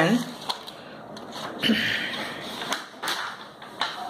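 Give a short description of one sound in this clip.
A sheet of paper rustles as it is turned.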